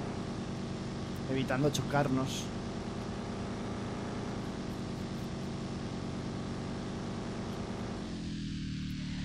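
A car engine hums steadily, then drops in pitch near the end.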